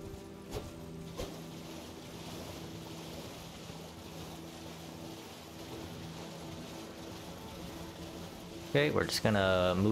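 Water splashes steadily as a horse gallops through shallows.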